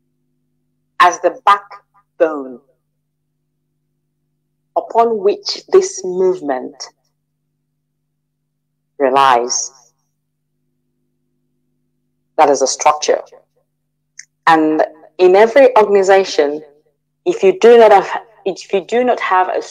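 A woman speaks with animation through a microphone, in short bursts with pauses.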